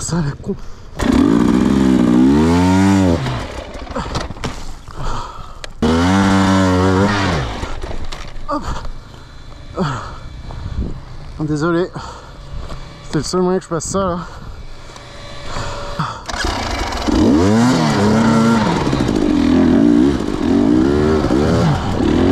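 A dirt bike engine revs hard in bursts.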